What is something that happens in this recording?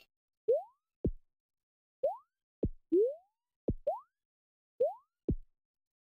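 Game jump sounds rise in short chirps.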